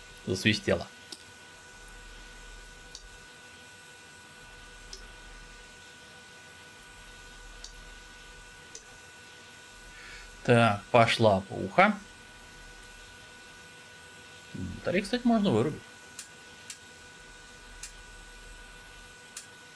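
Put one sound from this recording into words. Cockpit switches click softly as they are flipped.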